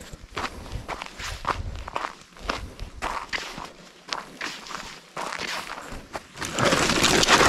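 Footsteps crunch on a dry, stony dirt path.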